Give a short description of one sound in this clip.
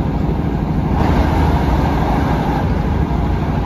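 Another train rushes past with a loud whoosh.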